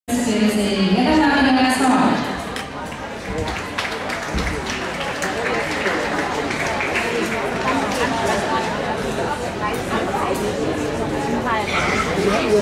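An audience murmurs and chatters in a large echoing hall.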